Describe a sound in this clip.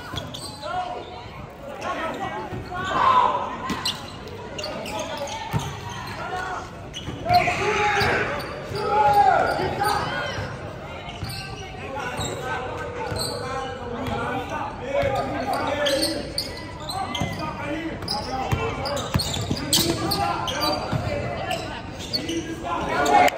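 Sneakers squeak on a hard floor, echoing in a large hall.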